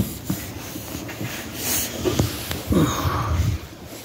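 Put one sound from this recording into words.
A cloth wipes across a smooth surface.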